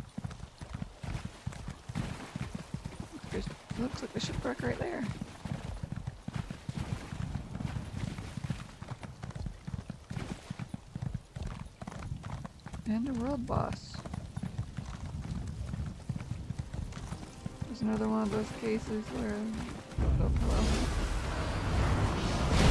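Hooves thud rapidly as a horse gallops.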